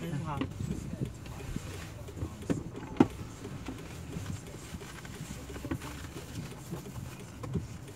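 A plastic bag rustles close by.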